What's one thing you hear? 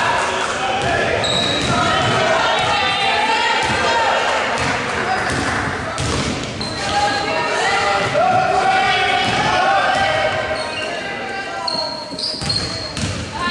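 A basketball bounces on a wooden court as a player dribbles.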